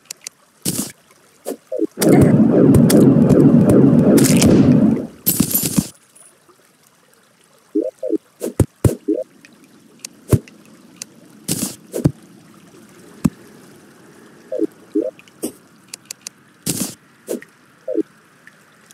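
Short video game sound effects pop and click now and then.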